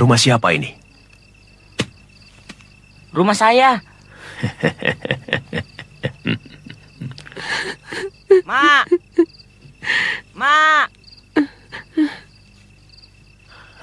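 An elderly man laughs softly nearby.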